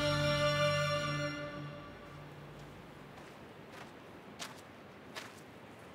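Footsteps crunch softly on a sandy path.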